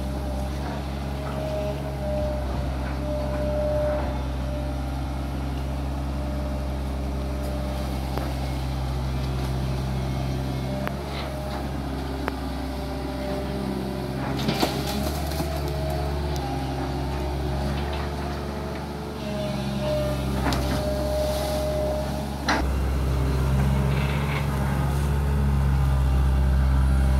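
A boat's diesel engine rumbles steadily close by.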